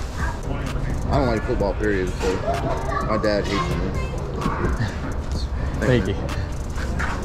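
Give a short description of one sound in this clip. A middle-aged man talks casually up close.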